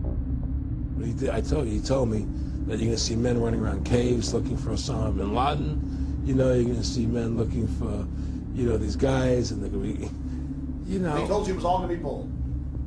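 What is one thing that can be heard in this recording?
An older man talks with animation, close to a microphone.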